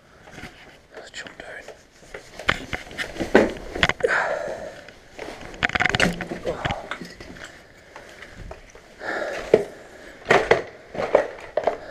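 Footsteps crunch and scrape over loose rubble and debris.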